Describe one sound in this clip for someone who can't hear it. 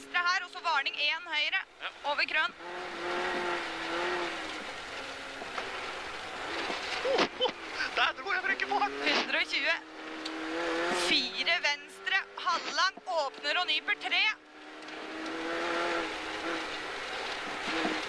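A rally car engine roars and revs up and down through the gears.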